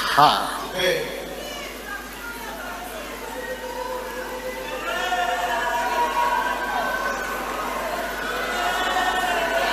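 A man preaches fervently into a microphone.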